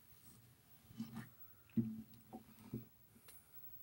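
A man strums an acoustic guitar up close.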